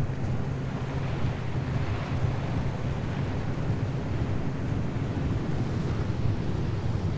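A car engine rumbles low while driving on a road.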